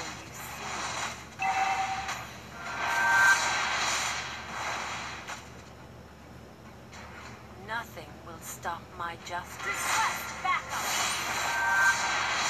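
Fighting sound effects whoosh and clash.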